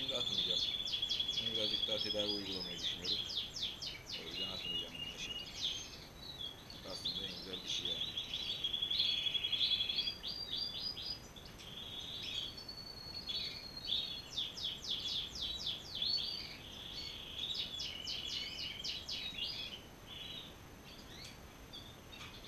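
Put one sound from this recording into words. Small birds chirp and trill busily all around.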